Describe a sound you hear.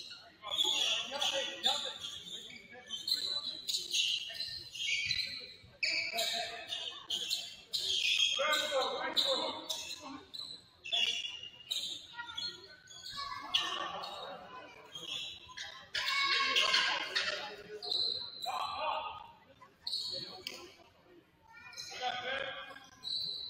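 Young women call out to each other across an echoing gym.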